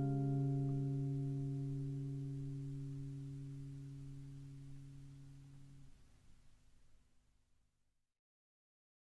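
An acoustic guitar chord rings out and slowly fades away.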